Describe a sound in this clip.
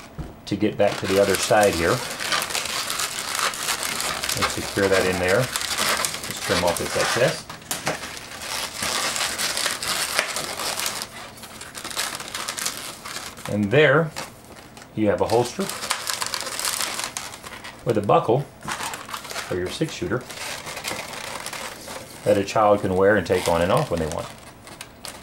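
Rubber balloons squeak loudly as they are twisted.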